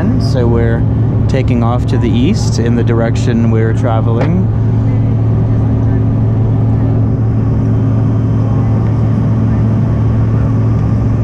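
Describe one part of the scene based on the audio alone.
Jet engines roar with a steady low drone inside an aircraft cabin.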